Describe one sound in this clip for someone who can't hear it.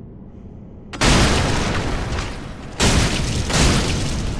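A sword slashes and strikes armour with heavy blows.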